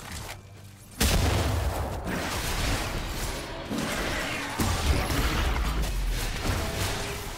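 Magical blasts and whooshes crackle during a fight.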